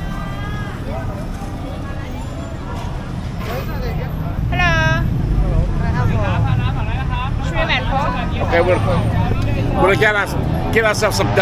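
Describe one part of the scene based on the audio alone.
A busy street hums with crowd chatter and traffic.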